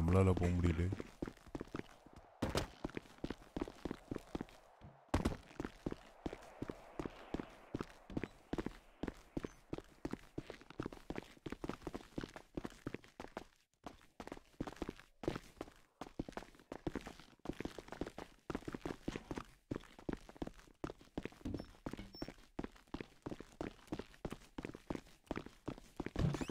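Quick footsteps tap on hard floors and stairs.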